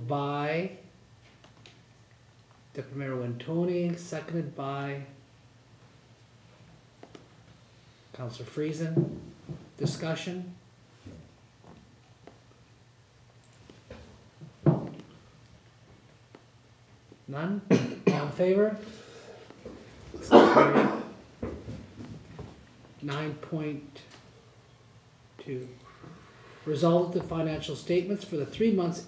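A man speaks calmly through a microphone, pausing often.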